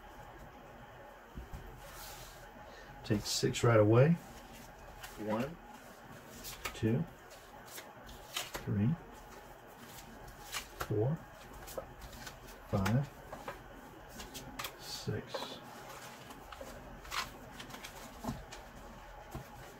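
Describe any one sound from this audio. Cards slide and rustle across a cloth surface.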